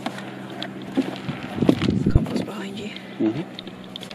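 A plastic plant pot knocks and rattles as it is handled.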